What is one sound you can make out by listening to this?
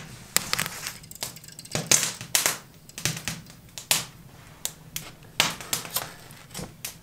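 Metal parts of a camping stove click and clink as they are handled.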